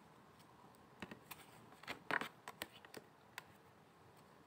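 Cards riffle and click as they are handled.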